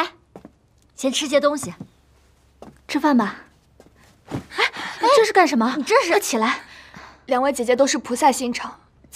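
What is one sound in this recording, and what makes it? Another young woman speaks urgently, close by.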